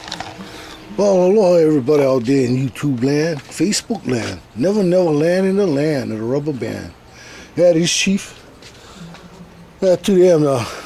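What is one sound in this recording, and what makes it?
An elderly man speaks with animation close to the microphone.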